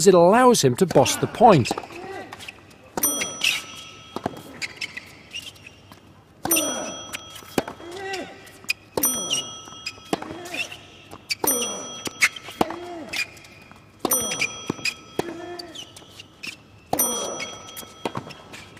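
A tennis ball is struck hard with a racket.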